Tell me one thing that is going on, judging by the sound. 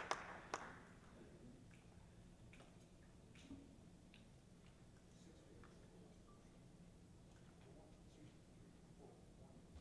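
A man talks quietly at a distance in a large room.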